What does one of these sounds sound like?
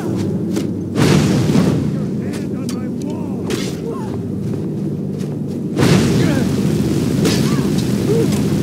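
Flames whoosh and roar in short bursts.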